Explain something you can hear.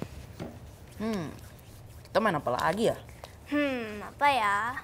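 A girl answers in a high, lively voice.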